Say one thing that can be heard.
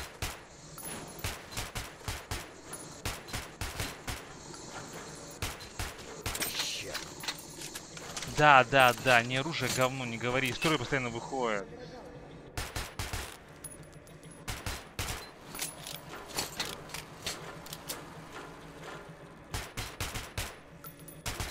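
A gun fires rapid shots in an echoing room.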